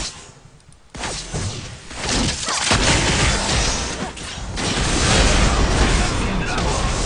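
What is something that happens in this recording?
Video game battle effects clash and blast loudly.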